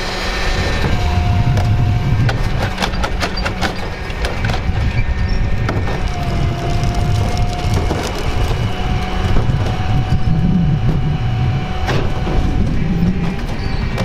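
A garbage truck's hydraulic lift whines.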